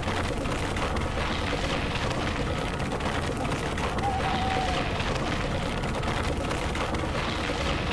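An engine runs steadily at high revs.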